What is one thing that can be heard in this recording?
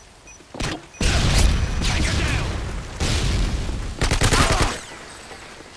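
Rapid gunfire bursts out close by.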